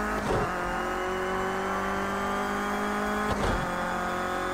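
A racing car's gearbox shifts up twice with brief jolts.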